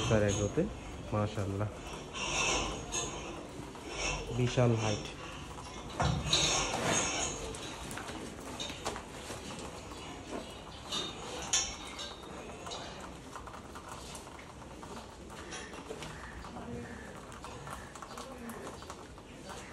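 A brush scrubs a cow's hide.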